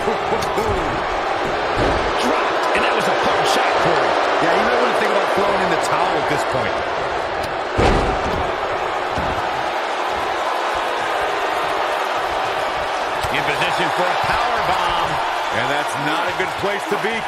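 A large crowd cheers and roars steadily throughout.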